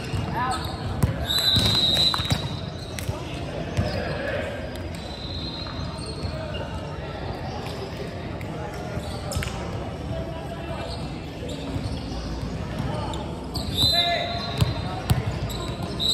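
A volleyball smacks off hands and arms, echoing in a large hall.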